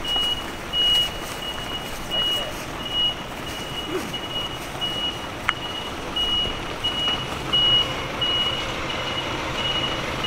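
A truck engine idles outdoors.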